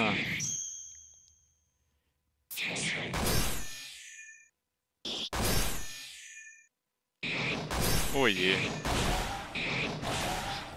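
Game sound effects of magic blasts and sword slashes burst out in quick bursts.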